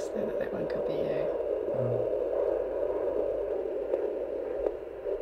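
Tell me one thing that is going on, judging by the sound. A fetal heart monitor whooshes and crackles with a steady rapid pulse.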